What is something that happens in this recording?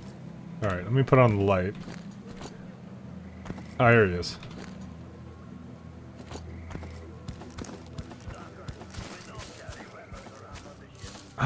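Footsteps rustle through dry tall grass.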